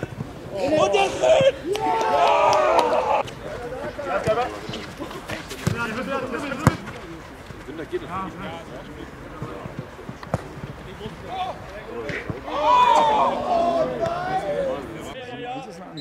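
Young men shout outdoors.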